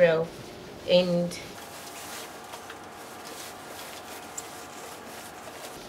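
Fabric rustles as hands move it.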